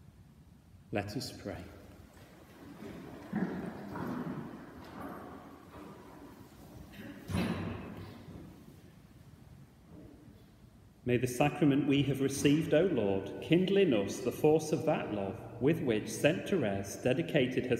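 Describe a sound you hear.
A middle-aged man speaks calmly into a microphone in an echoing hall.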